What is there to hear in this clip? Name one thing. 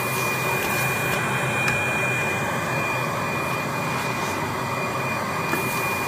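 A machine hums steadily with a high whine.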